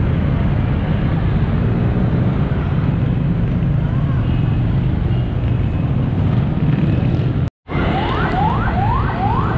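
A motorcycle engine passes by.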